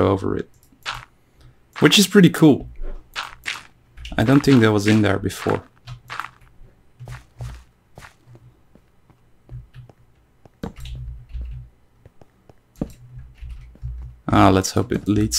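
Footsteps tap on stone.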